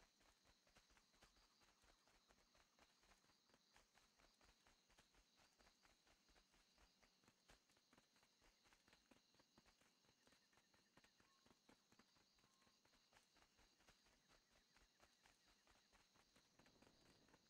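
Footsteps run steadily over grass and dirt.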